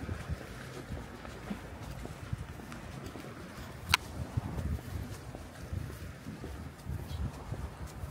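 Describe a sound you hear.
Small sea waves lap gently against rocks nearby.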